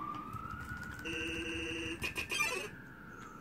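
Video game text blips chatter in quick bursts.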